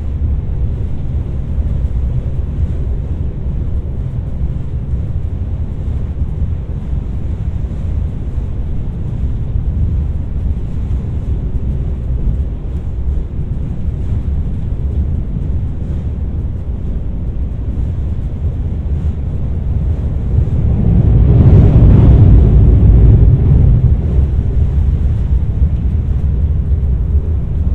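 A train rumbles steadily along a bridge, heard from inside a carriage.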